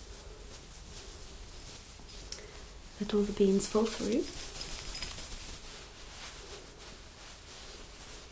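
Fabric rustles and brushes against a microphone.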